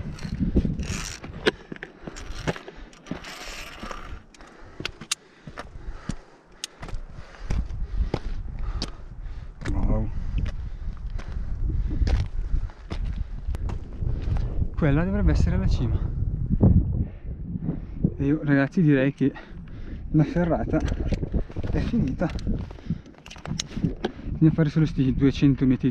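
Boots crunch on loose stones.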